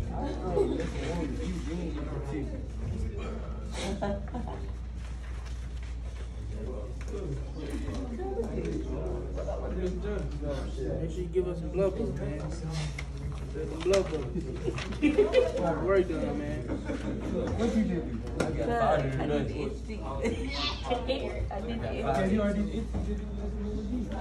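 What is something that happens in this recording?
Teenagers chatter and talk over each other nearby.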